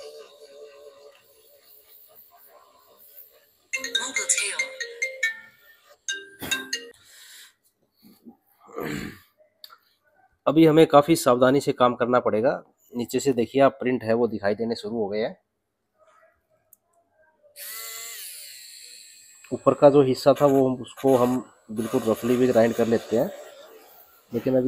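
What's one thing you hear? A small electric screwdriver whirs in short bursts.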